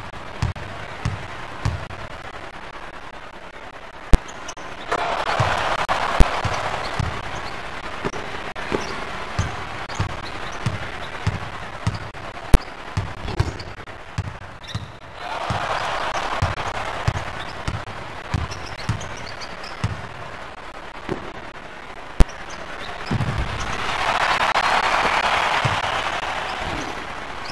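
A basketball is dribbled on a hardwood court in a video game.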